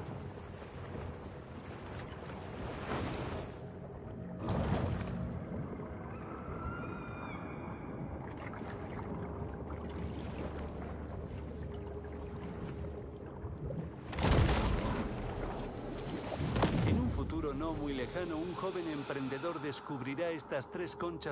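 Water rumbles and swirls steadily underwater.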